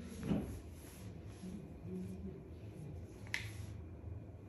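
A plastic hair clip clicks shut.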